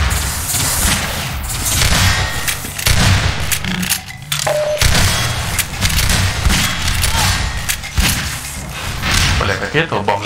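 Gunshots fire in quick bursts, echoing off hard walls.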